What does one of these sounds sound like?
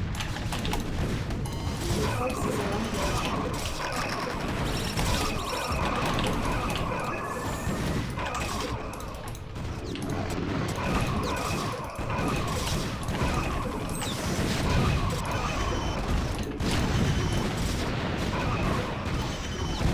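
Gunfire and explosions crackle and boom in rapid bursts.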